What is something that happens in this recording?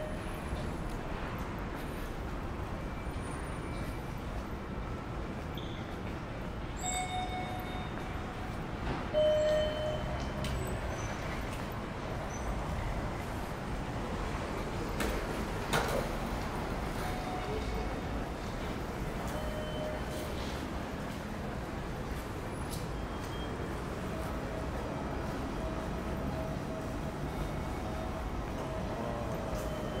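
A steady low city hum fills an open outdoor space.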